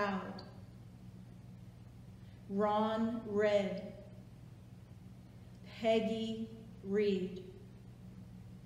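An older woman speaks slowly and solemnly in short phrases, with long pauses.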